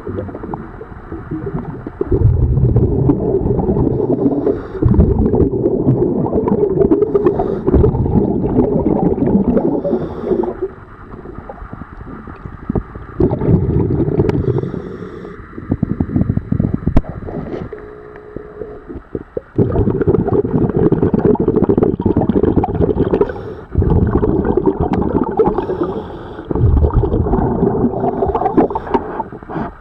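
Water rushes and churns close by underwater.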